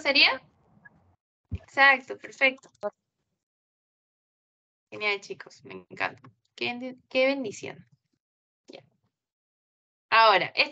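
A young woman speaks calmly into a microphone on an online call.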